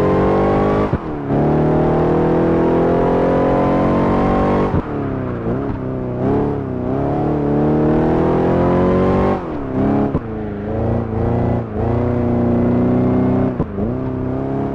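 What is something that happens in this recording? A supercharged V8 sports car engine drops in pitch with each quick gear shift.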